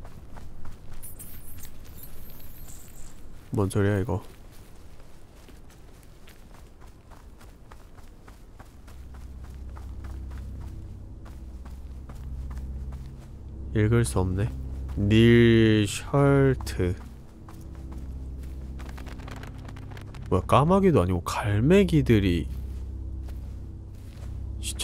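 Footsteps patter on soft ground.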